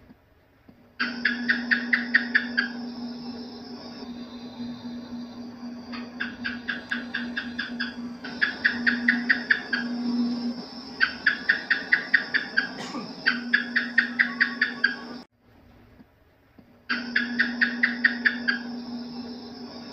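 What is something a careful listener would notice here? A gecko chirps in rapid bursts of sharp clicks.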